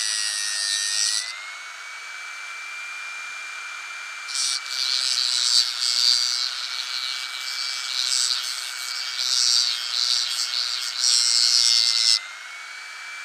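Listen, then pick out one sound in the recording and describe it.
A small rotary tool grinds against plastic with a harsh hiss.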